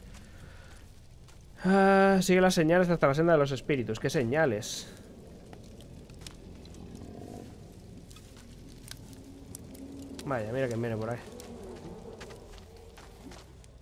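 Footsteps crunch softly on forest ground.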